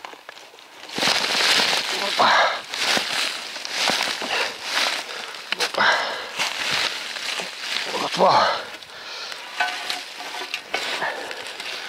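A shovel scrapes and cuts into soil.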